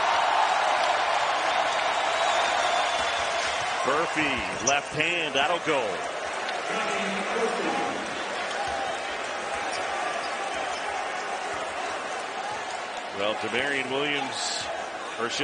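A large crowd cheers and roars in a big echoing arena, loudest at first and slowly settling.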